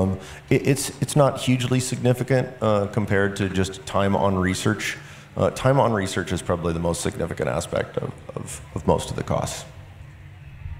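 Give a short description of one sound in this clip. A man speaks calmly into a microphone, heard through loudspeakers.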